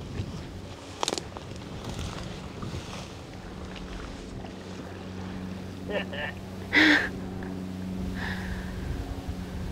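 Boots squelch and rustle through wet marsh grass.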